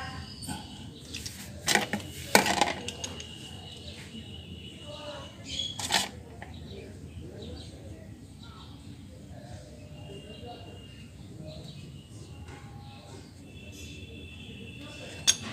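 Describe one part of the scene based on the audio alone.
A metal wrench clicks and clanks against a bolt.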